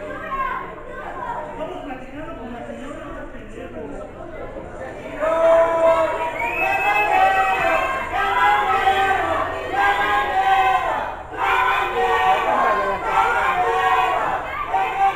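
A crowd of spectators chatters and shouts in an echoing hall.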